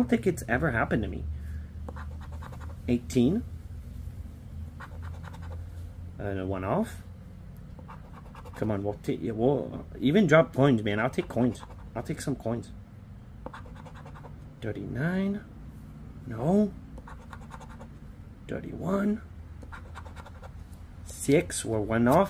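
A man talks calmly and close by, in short bursts.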